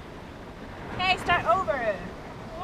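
A young woman squeals with laughter close by.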